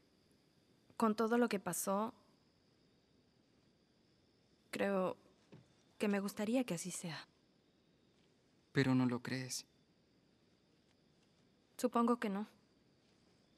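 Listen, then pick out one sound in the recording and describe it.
A teenage girl speaks quietly and hesitantly, close by.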